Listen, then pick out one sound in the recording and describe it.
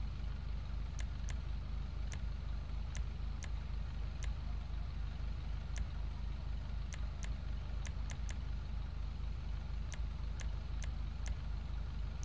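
Menu selections tick with short, sharp clicks.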